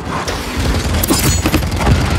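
Gunfire cracks in quick bursts.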